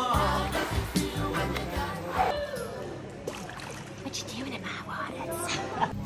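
Water splashes in a pool.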